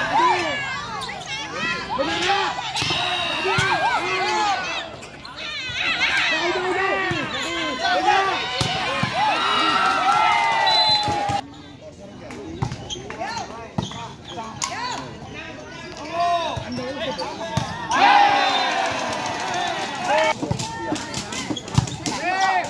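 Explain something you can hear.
Young men shout and call out nearby, outdoors.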